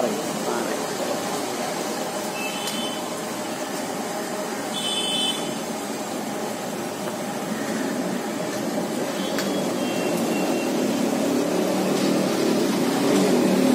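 Hot oil bubbles and sizzles steadily in a large pan.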